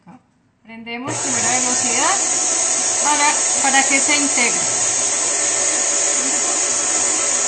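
An electric stand mixer whirs loudly as it beats batter.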